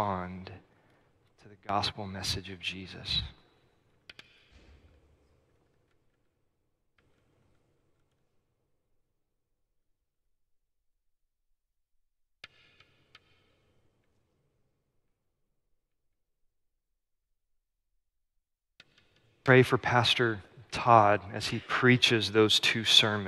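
A man speaks calmly into a microphone, with long pauses, in a large echoing hall.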